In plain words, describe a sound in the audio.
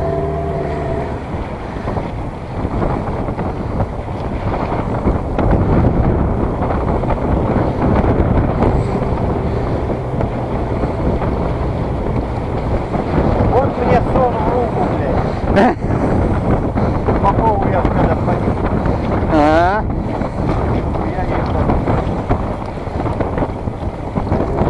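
A fishing net rustles as hands pull at it.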